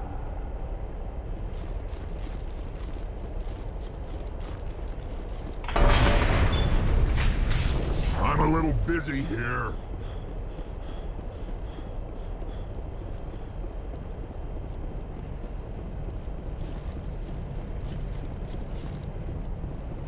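Heavy boots thud on a metal grating floor.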